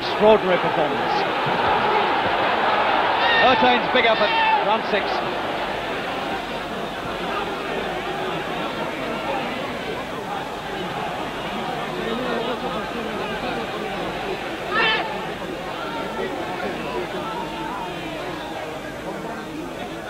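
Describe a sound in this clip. A large crowd roars and cheers in a big hall, loudest at first and then settling.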